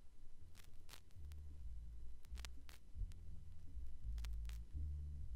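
Deep bass-heavy music plays from a spinning record.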